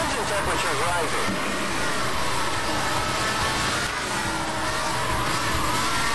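Tyres screech as a racing car slides through a bend.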